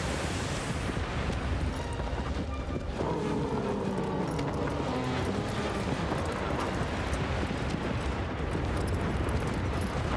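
A horse gallops with heavy, rapid hoofbeats on hard ground.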